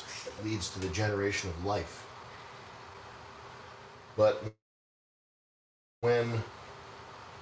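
A man speaks with animation, close by, through a small room microphone.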